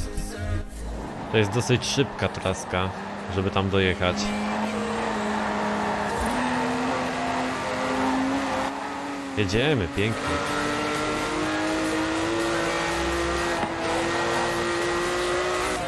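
A car engine roars steadily and climbs in pitch as it speeds up.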